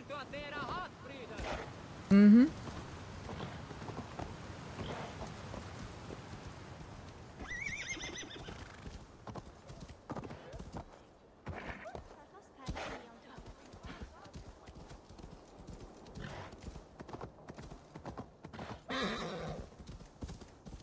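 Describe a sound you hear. Horse hooves crunch through snow.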